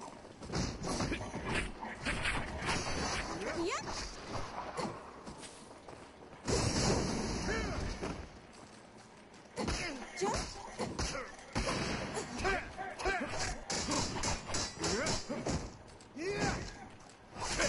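Swords clash and strike in quick bursts.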